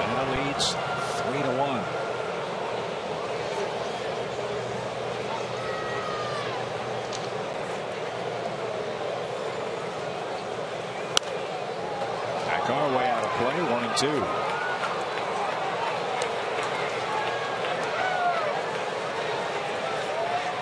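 A large crowd murmurs and cheers in an open stadium.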